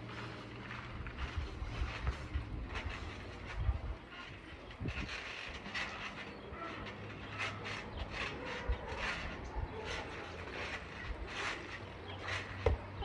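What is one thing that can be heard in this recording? A trampoline's springs creak and thump as a boy bounces.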